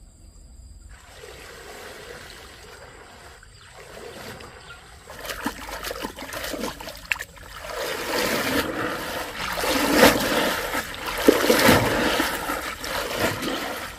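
A stream flows and gurgles gently.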